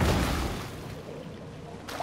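Water splashes as a shark breaks the surface.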